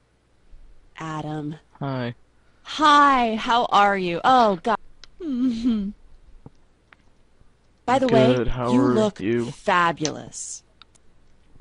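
A young woman speaks cheerfully and up close.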